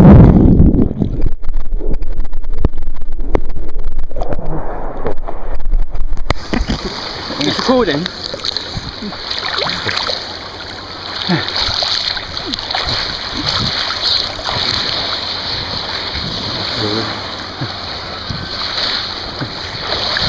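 Sea water splashes and churns close by.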